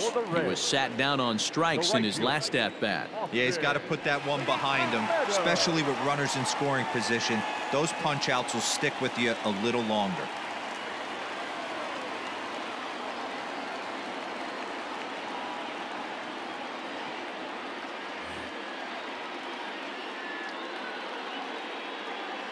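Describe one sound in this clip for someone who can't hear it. A large crowd murmurs steadily in a big stadium.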